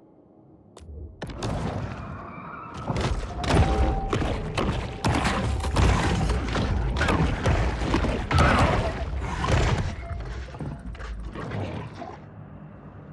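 A shark bites with heavy thuds and crunches.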